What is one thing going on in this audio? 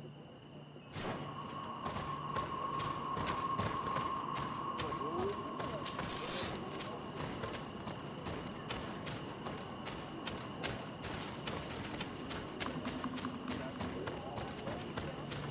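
Footsteps crunch steadily over dry leaves and earth.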